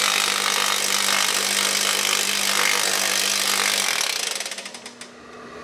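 A pneumatic tool whirs loudly against sheet metal.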